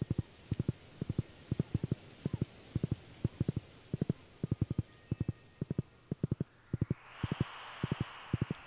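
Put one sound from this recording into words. Hooves clop in a steady rhythm on dirt.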